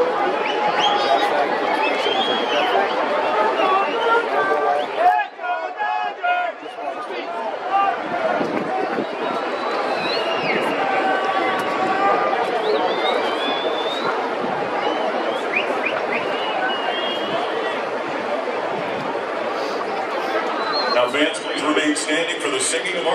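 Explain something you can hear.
A large crowd murmurs and chatters in a wide open space.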